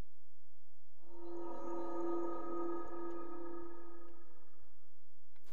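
A shimmering magical chime rings out steadily, then fades.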